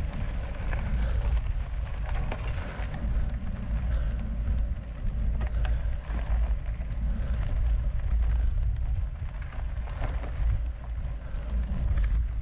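A bicycle rattles with small clicks and knocks over bumps.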